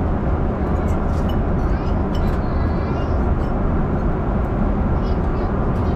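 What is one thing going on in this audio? Cutlery clinks against a plate.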